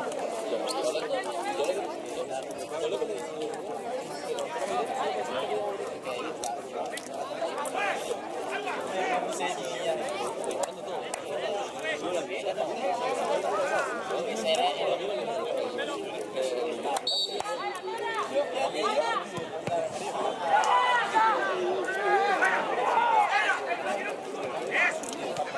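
Young men shout and call to each other across an open outdoor field.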